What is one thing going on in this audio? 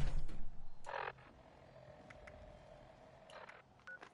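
A short electronic blip sounds a few times.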